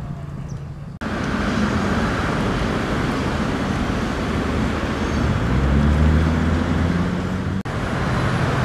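Cars drive past on a busy road nearby.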